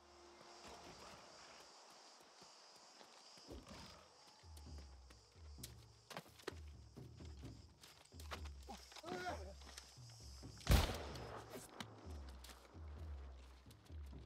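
Footsteps thud on stone steps.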